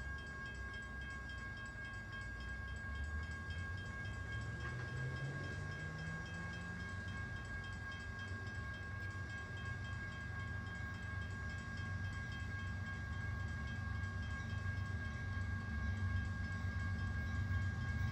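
A train rumbles slowly closer along the tracks.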